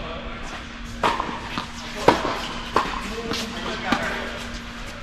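Tennis rackets strike a ball with sharp pops in a large echoing hall.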